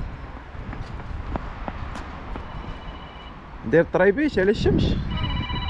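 Small footsteps tap on pavement.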